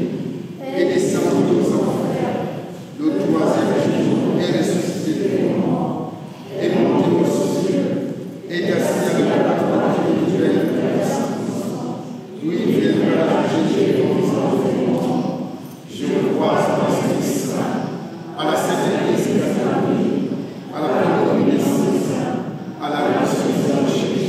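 A congregation of men and women sings together in phrases, echoing in a large hall.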